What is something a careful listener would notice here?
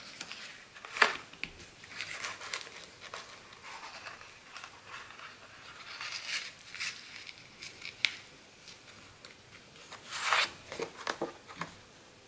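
Cardboard taps and scrapes on a table.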